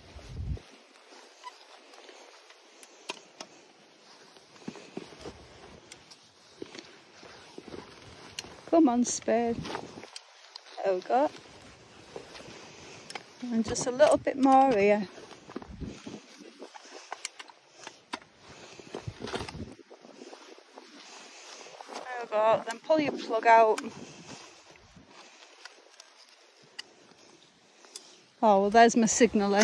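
A hand spade cuts and crunches into grassy turf.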